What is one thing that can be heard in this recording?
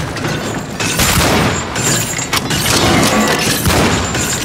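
A rifle fires loud shots in a dim echoing space.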